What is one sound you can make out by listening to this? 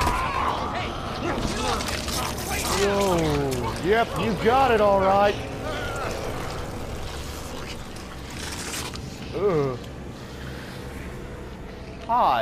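A zombie growls and snarls.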